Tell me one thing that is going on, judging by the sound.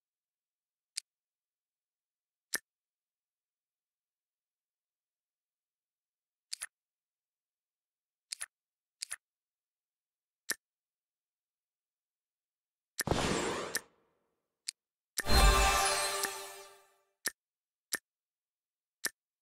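Game menu buttons click softly.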